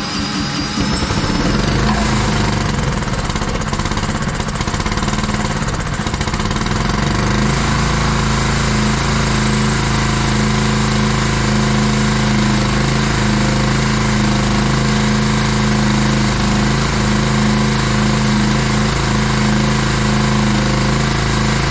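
A small petrol engine runs loudly and steadily close by.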